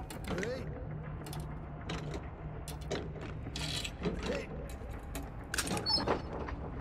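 A wooden chest creaks and rattles as it is rummaged through.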